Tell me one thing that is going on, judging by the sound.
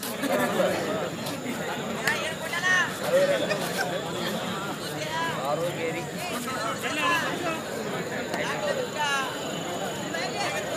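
A large outdoor crowd cheers and chatters steadily.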